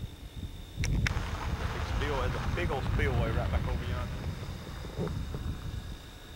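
A man speaks with animation close to the microphone, outdoors in wind.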